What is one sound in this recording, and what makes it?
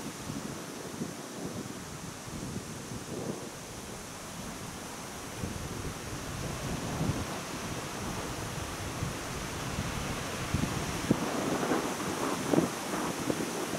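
Wind blows across open ground and buffets the microphone.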